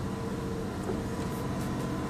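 Windscreen wipers swish across the glass.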